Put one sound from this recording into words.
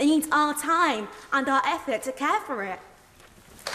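A young woman speaks with passion in a large hall.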